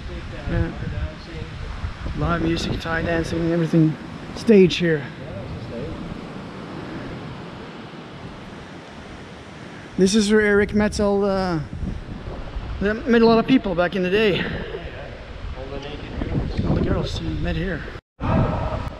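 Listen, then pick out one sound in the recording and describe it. An elderly man talks calmly close by, with a slight echo.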